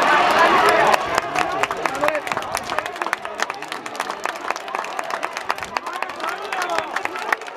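Many spectators clap their hands.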